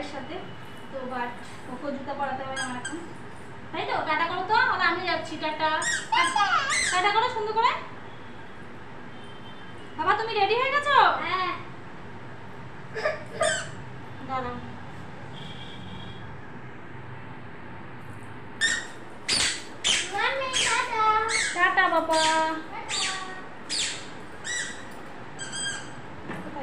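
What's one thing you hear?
A woman talks playfully close by.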